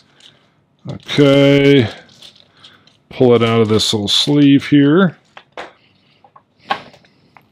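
Plastic wrapping crinkles as it is handled.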